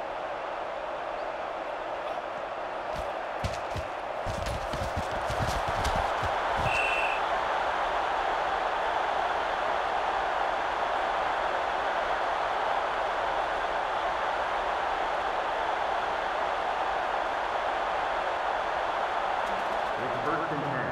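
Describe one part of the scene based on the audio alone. A stadium crowd roars steadily in a large open space.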